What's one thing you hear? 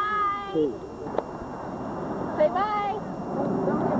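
A young child squeals in a high voice close by.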